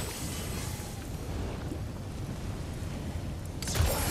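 Flames roar and crackle close by.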